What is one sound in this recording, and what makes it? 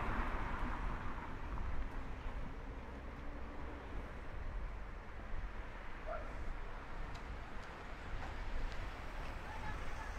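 A car drives slowly along the street nearby.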